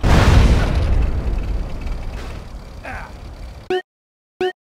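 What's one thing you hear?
Fire crackles and burns.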